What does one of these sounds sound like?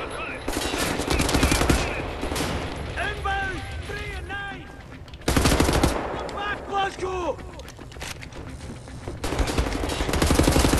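Automatic guns fire in rapid, loud bursts.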